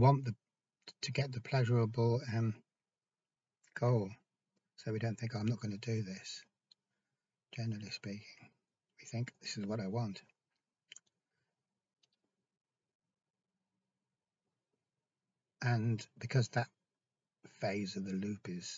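A middle-aged man talks calmly and close up, with pauses.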